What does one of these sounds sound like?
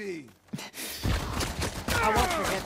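Heavy punches thud in a close scuffle.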